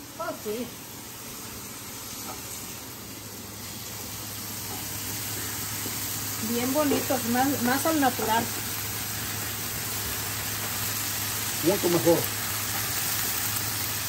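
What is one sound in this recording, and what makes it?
A wooden spatula scrapes a frying pan.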